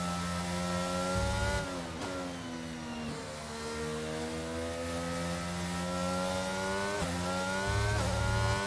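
A racing car engine whines at high revs, rising in pitch and dropping sharply with each gear change.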